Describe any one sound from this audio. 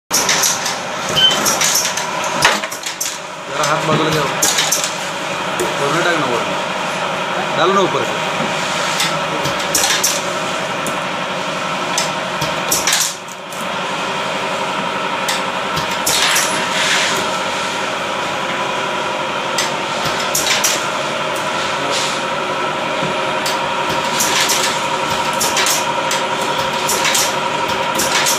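Metal parts clack and click as a man handles a press.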